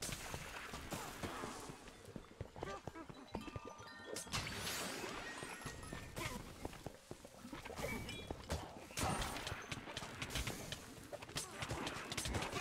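Magic spells whoosh and sparkle.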